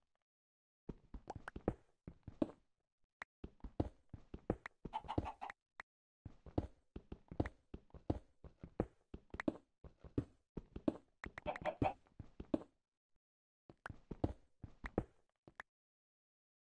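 A pickaxe chips at stone blocks with quick repeated knocks.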